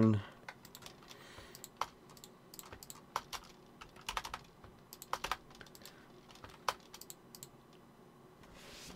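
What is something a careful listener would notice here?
Soft game menu clicks sound as items are moved.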